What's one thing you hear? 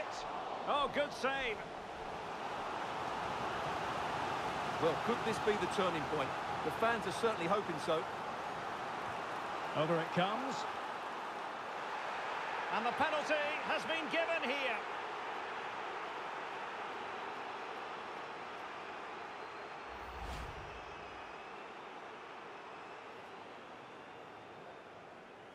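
A large stadium crowd roars steadily, slowly fading toward the end.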